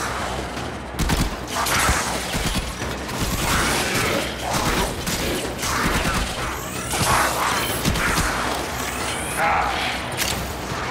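Heavy blade swings and blasts hit with sharp metallic thuds.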